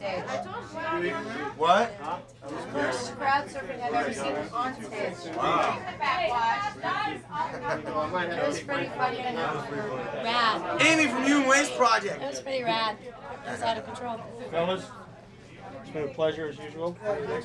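Several young men talk and laugh together close by.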